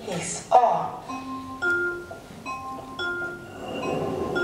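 An elevator chime rings out in a short series of clear tones.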